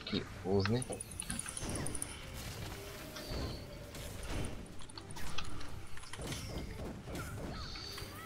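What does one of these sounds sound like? Magic blasts whoosh and crash in quick bursts.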